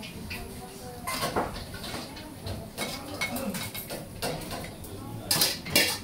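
Ceramic plates clink together.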